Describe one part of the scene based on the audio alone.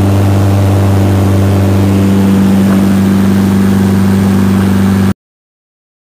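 A small aircraft engine drones loudly and steadily close by.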